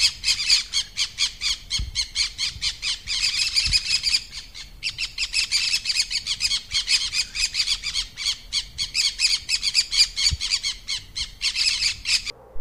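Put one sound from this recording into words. A parakeet chatters with rapid, shrill, scratchy calls.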